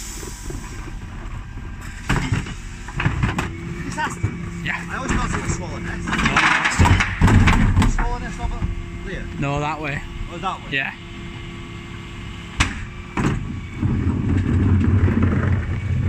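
A lorry engine idles steadily nearby.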